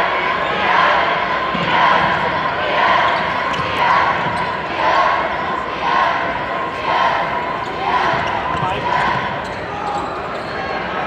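A crowd chants in a steady beat.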